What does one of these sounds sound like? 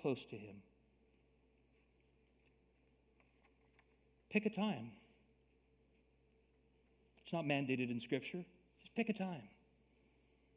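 A man speaks calmly through a microphone in a large room, with pauses.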